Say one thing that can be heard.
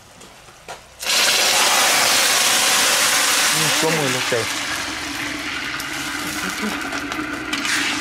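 Water pours into a hot pan with a loud hiss.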